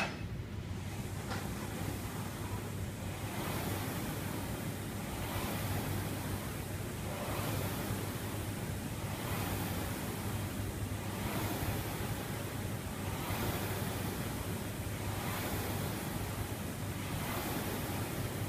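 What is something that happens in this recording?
A rowing machine's flywheel whooshes in steady, rhythmic surges.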